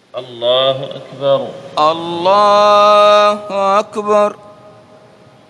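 A man chants loudly through a loudspeaker in a large echoing hall.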